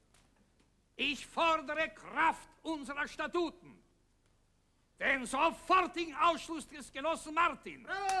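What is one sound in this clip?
A middle-aged man declaims loudly.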